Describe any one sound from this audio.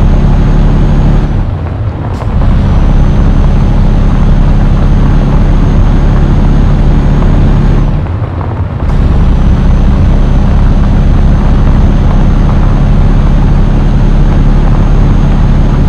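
A diesel truck engine drones under load.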